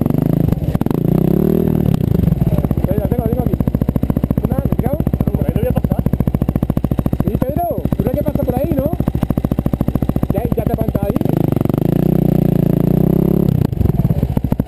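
A dirt bike engine revs.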